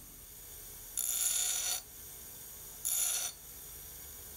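Metal grinds against a spinning grinding wheel in two short, harsh hissing bursts.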